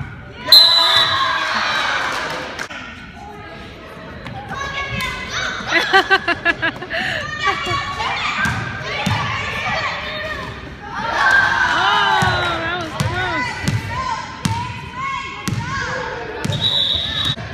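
Children shout and cheer in a large echoing gym.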